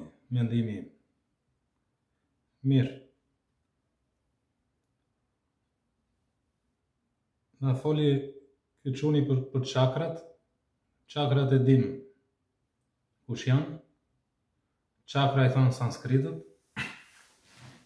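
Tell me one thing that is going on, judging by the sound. An older man speaks calmly and close by, in short phrases with pauses.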